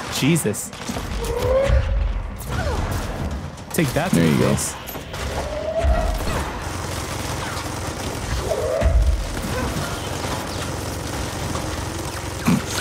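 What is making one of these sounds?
Explosions boom and debris crashes.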